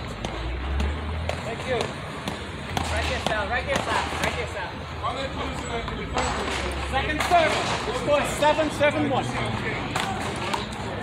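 Several men talk and call out nearby.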